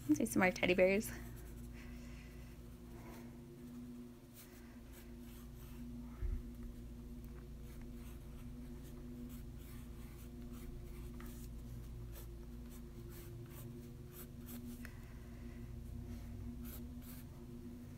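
A pencil scratches lightly across paper.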